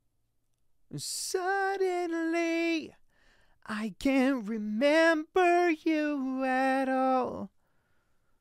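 A man sings a melody into a microphone.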